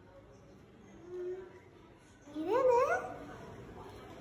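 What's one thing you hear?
A young girl speaks and exclaims close by.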